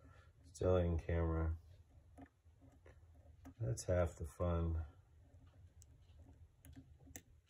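Metal picks click and scrape faintly inside a lock.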